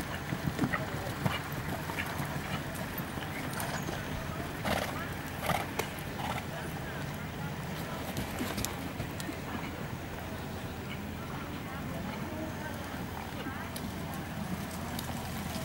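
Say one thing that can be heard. Horses' hooves thud softly on sand.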